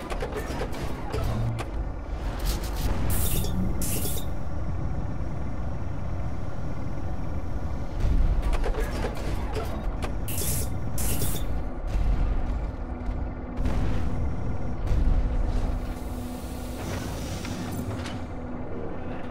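A deep machine hum rumbles throughout.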